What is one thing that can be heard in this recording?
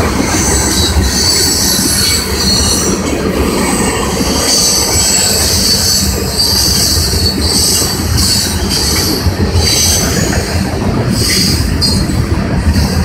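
Metal wheels squeal and screech on the rails.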